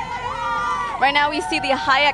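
Young girls scream and cheer excitedly.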